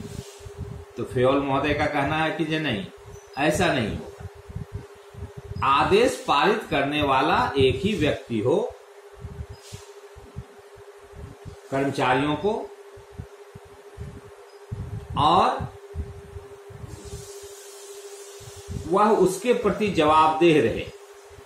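A middle-aged man speaks calmly in short bursts, close by, with pauses between phrases.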